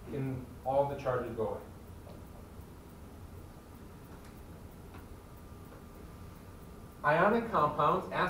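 A man lectures in a room with a slight echo, heard from a distance.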